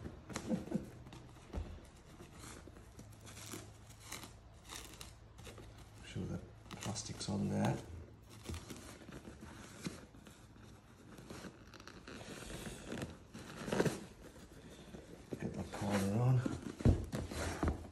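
Fabric rustles and crinkles as it is stretched over a seat.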